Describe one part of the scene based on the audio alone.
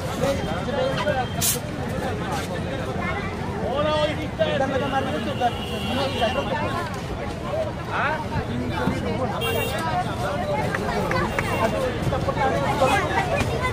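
A bottle cap twists open with a click.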